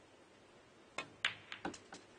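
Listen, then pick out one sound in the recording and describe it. A cue strikes a billiard ball with a sharp tap.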